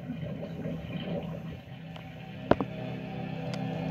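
Bubbles rush and gurgle underwater.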